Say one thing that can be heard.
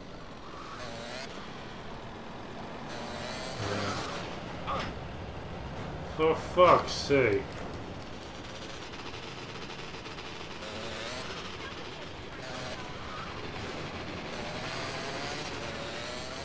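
A motorbike engine revs and hums steadily as it rides along.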